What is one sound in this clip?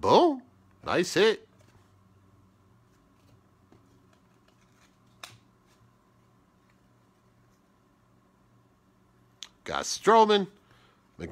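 Trading cards rustle and flick as fingers shuffle through them.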